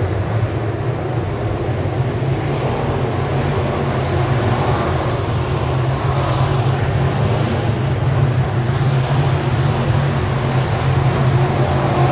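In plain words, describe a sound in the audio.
Race car engines roar loudly around a dirt track outdoors.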